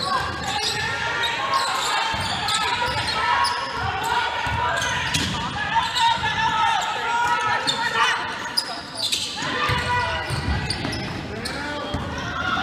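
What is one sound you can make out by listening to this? Young women call out to each other in a large echoing hall.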